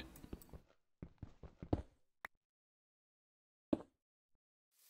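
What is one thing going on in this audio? A pickaxe chips at stone with a few dull knocks.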